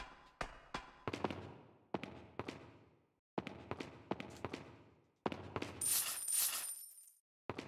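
Footsteps tap on a hard floor in an echoing room.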